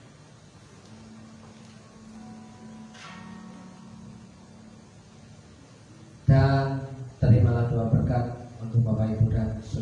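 A band plays music through loudspeakers.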